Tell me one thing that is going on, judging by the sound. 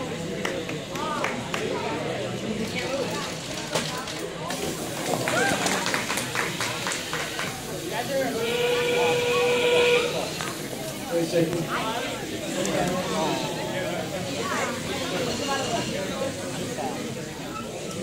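A crowd of children and adults chatter and call out nearby in a busy indoor hall.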